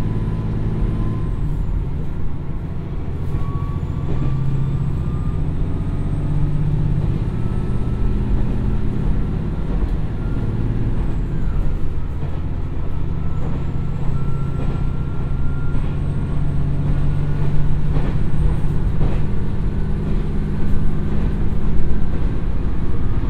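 A diesel train engine drones and rumbles low and steadily.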